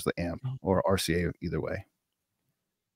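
A man speaks calmly into a microphone, heard through an online call.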